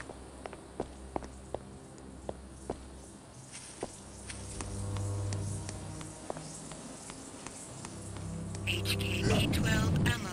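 Footsteps tap on stone steps.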